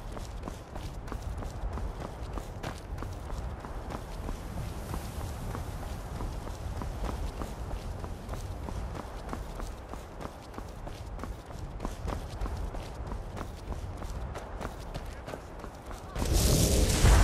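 Footsteps crunch steadily on a stony path.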